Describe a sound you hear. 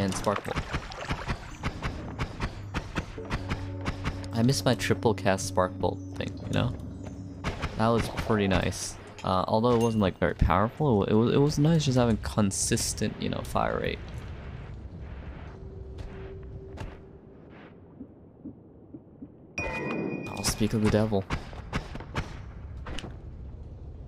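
Video game spell effects zap and crackle.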